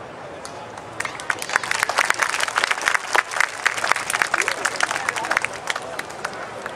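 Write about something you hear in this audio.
An audience applauds and claps.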